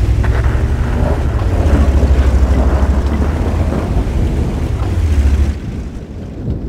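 A tank engine rumbles deeply as the tank drives.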